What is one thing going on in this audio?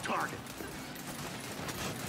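Electric bolts crackle and zap in short bursts.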